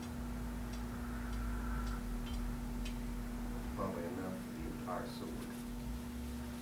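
Small metal parts click softly in a man's hands.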